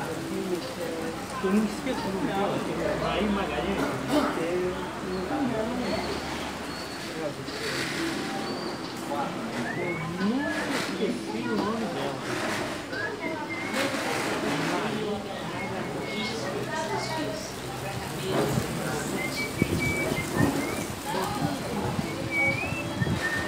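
Several men talk with animation close by.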